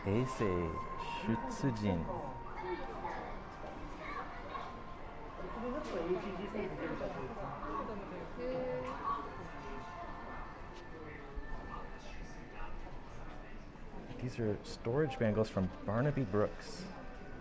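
A woman and other people chatter nearby.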